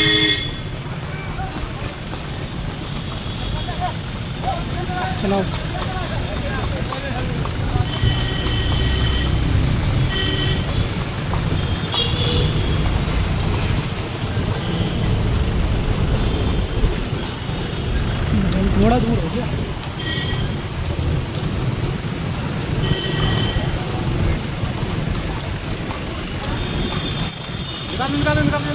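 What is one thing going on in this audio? Motorcycle engines hum steadily as they ride along a street.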